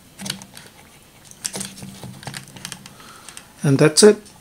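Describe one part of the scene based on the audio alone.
Plastic parts click and rattle as a hand handles them.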